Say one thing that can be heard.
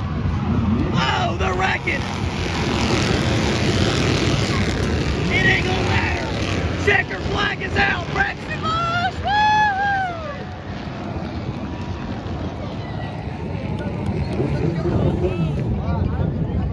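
Race cars roar around a track outdoors.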